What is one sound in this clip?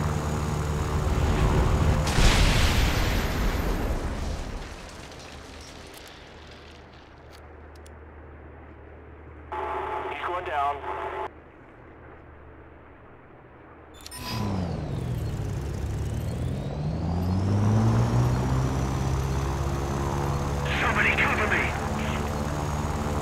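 A propeller fighter plane's piston engine drones in flight.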